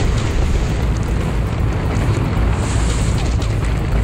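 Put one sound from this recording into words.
Rocks crash and tumble down in a game.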